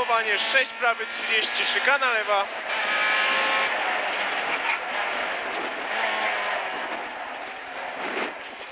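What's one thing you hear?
A rally car engine roars loudly and revs up and down.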